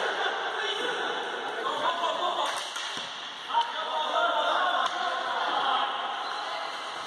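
Shoes squeak on a hall floor.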